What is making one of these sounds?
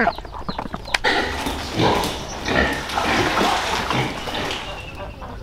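Pigs grunt and squeal.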